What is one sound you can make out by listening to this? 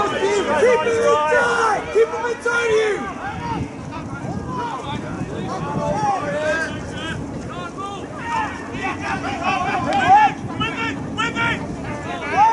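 Men talk and call out loudly close by.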